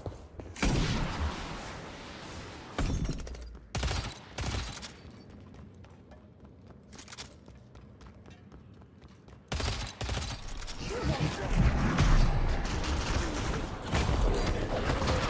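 Gunshots and blasts burst out in a video game.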